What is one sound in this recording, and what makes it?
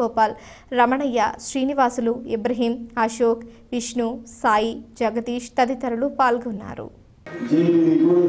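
A young woman reads out calmly and clearly, close to a microphone.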